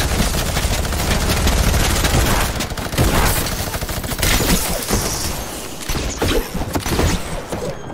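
Building pieces snap into place in quick, clattering bursts.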